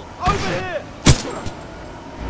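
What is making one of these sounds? A gun fires a single sharp shot.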